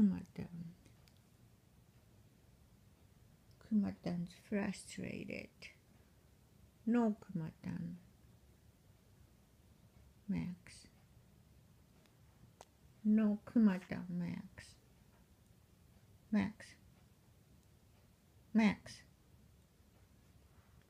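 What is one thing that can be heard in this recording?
A dog's paws patter softly on a floor.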